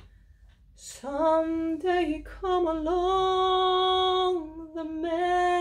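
A young woman sings a long, steady note.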